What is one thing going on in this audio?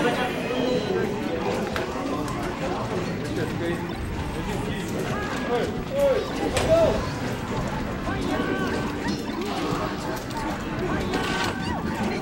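Fighting game sound effects thump, whoosh and chime over lively game music.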